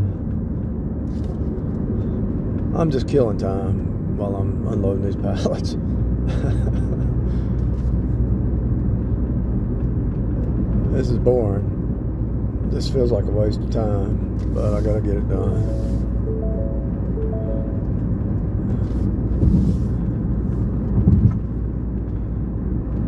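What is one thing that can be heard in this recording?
A car's engine and tyres hum steadily on a highway.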